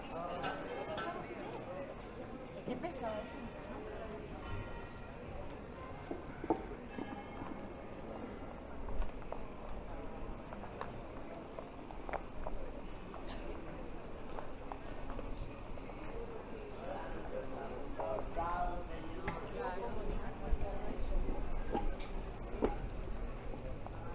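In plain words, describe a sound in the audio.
Men and women chatter nearby.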